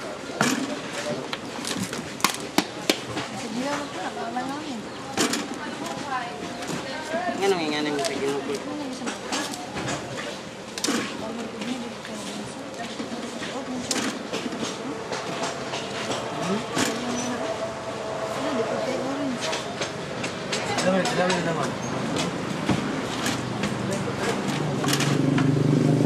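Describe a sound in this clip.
Spiky fruits knock and thump on a wooden table.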